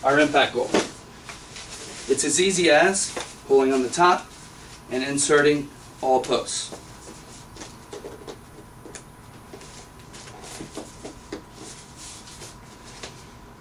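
A fabric net rustles as it is pulled open.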